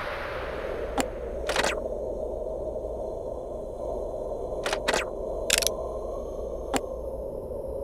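Short electronic clicks sound as game menu buttons are pressed.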